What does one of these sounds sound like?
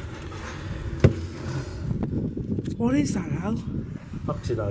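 A plastic bucket knocks as it is handled.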